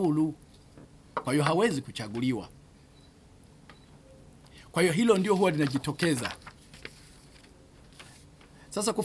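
A middle-aged man speaks calmly into microphones, with pauses between phrases.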